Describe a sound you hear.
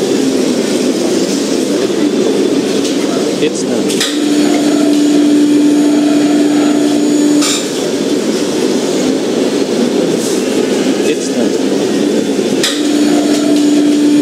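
A tow truck engine rumbles as it drives and turns.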